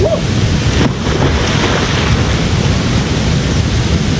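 Water splashes loudly as a man dives into a pool.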